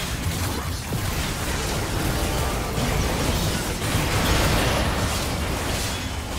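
Spell effects crackle and burst in a game fight.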